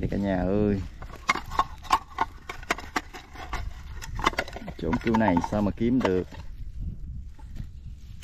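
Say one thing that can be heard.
Clods of soil crumble and thud as hands dig.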